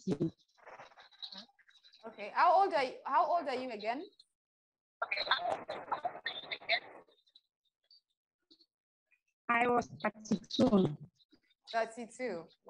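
A woman speaks emotionally and close up, heard through a phone's microphone.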